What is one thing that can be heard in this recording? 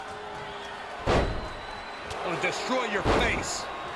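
Heavy thuds of bodies slamming onto a wrestling ring.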